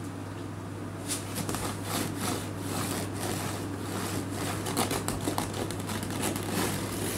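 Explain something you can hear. A kitten's paws scrape against a wire cage.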